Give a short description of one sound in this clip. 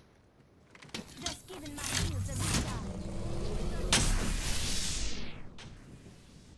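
A device charges with a rising hum that cuts off sharply.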